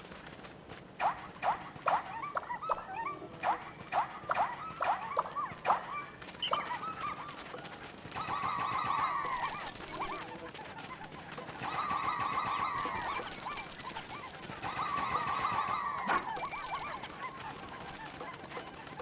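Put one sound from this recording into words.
Small cartoon creatures chirp in high, squeaky voices.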